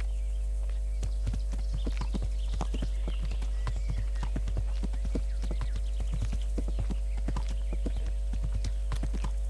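A horse's hooves trot on a dirt path.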